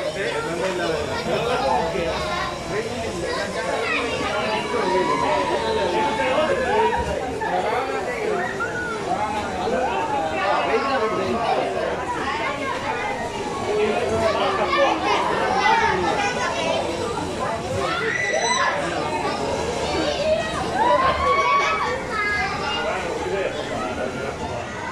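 Children and adults shout and chatter excitedly close by.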